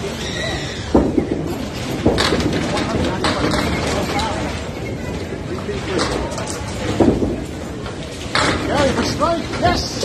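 A bowling ball rolls and rumbles down a wooden lane.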